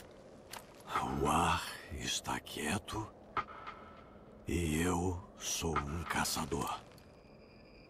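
A man speaks in a low, gravelly voice.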